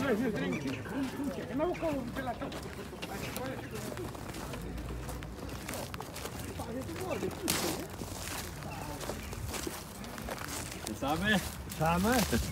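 Footsteps crunch on frozen snow and dry grass.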